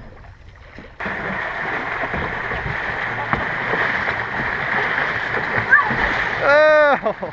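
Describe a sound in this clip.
Water churns and sprays loudly around small boats.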